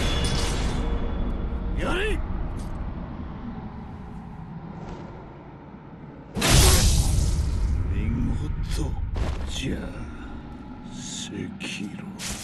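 Steel swords clash and ring sharply.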